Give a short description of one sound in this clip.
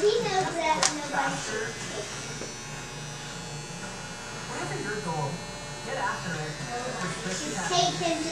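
Electric hair clippers buzz steadily.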